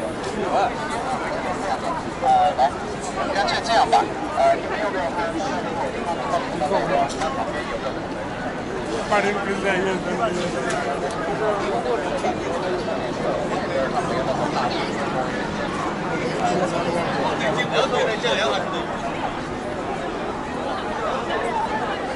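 A crowd of people chatter all around outdoors.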